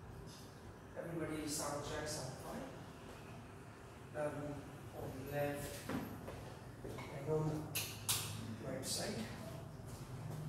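A man speaks calmly and softly in a quiet room.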